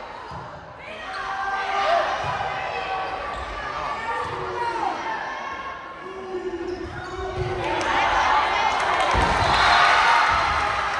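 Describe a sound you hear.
A crowd of spectators cheers and shouts in a large echoing gym.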